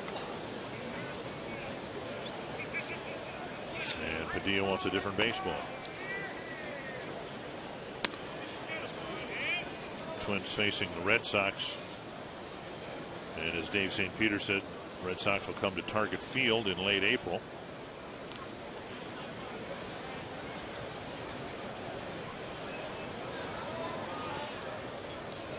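A stadium crowd murmurs in the background.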